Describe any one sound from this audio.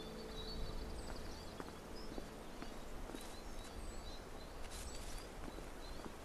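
Footsteps crunch on dirt and rock.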